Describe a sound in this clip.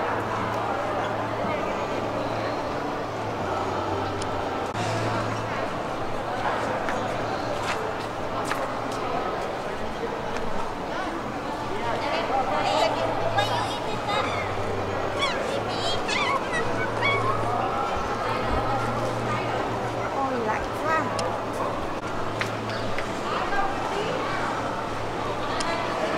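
Visitors chatter at a distance in a large echoing hall.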